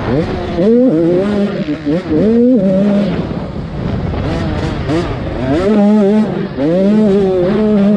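Tyres churn over loose dirt.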